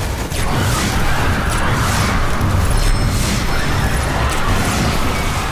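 Flames roar in a game.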